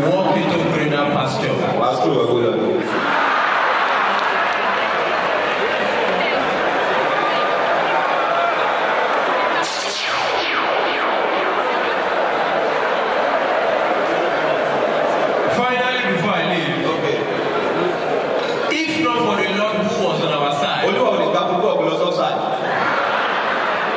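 A young man speaks with animation through a microphone in a large echoing hall.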